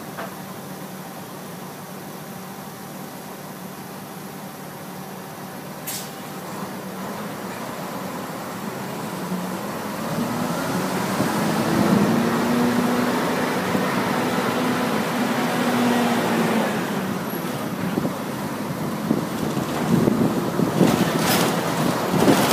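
A vehicle's engine hums as it drives through city traffic, growing louder as it speeds up.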